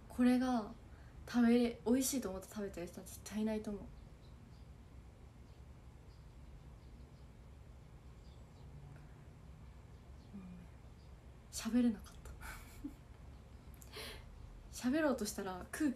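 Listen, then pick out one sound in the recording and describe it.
A young woman speaks softly and cheerfully close to a microphone, with pauses.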